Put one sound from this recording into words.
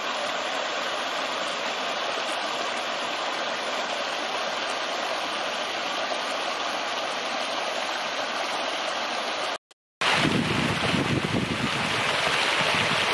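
Water trickles and splashes steadily over rocks into a pool.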